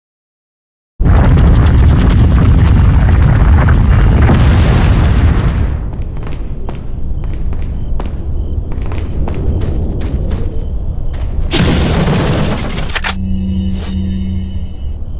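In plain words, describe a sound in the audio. A loud, low rumbling game soundtrack plays with sharp clicks and thuds.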